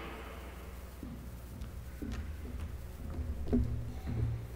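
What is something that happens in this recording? People shuffle and stand up from wooden pews in a large echoing hall.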